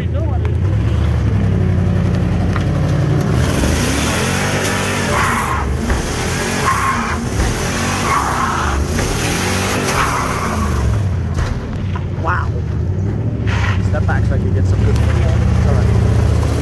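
A truck engine roars and revs loudly.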